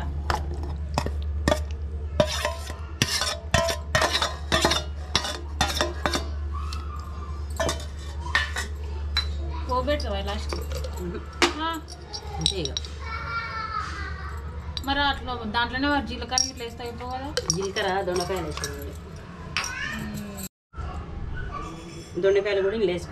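A metal ladle scrapes and clatters against a steel pot.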